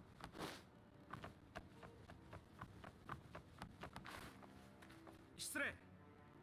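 Footsteps run on packed dirt.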